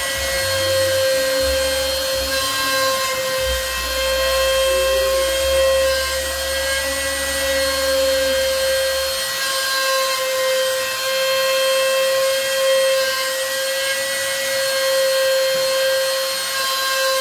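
A router bit cuts into wood with a rough buzzing.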